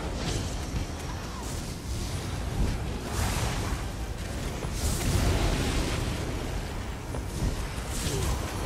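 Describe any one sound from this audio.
Electric bolts zap and crackle.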